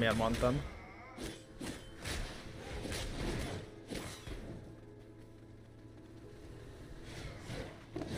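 Combat effects clash and crackle.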